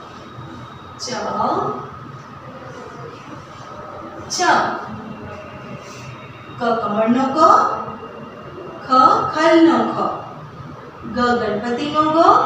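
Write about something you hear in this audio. A woman speaks clearly and calmly, close by, as if teaching.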